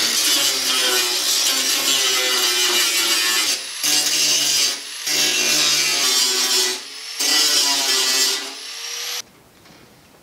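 An angle grinder whines loudly against metal.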